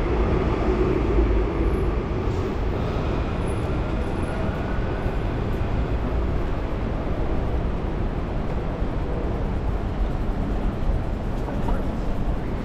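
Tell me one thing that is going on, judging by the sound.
City traffic hums and rumbles steadily outdoors.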